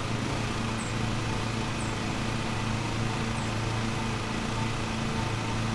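A ride-on lawn mower engine hums steadily.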